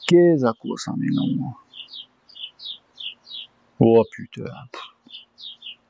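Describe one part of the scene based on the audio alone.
A man speaks close by in short, calm phrases.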